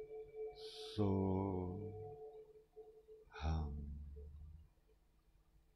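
An elderly man chants long, low, drawn-out tones close to a microphone.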